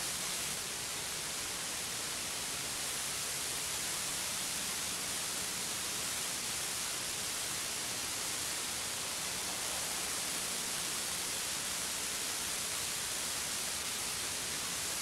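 A model helicopter's small engine whines steadily overhead.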